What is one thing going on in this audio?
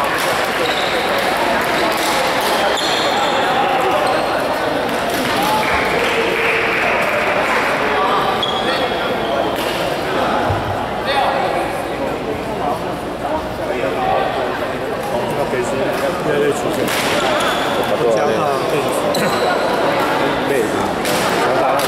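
Badminton rackets strike shuttlecocks with sharp pops in a large echoing hall.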